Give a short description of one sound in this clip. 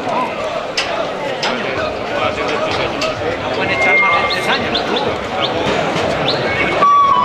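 A crowd of people chatter and shout nearby.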